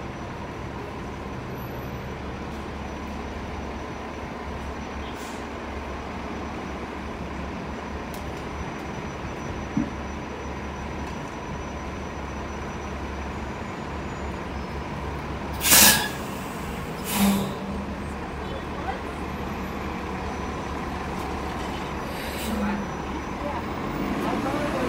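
A bus engine idles with a steady low rumble nearby.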